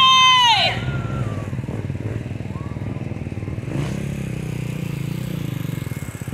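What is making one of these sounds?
A motorcycle engine idles nearby with a low rumble.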